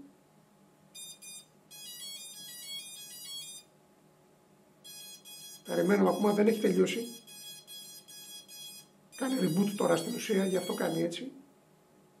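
A small drone beeps a quick series of electronic tones.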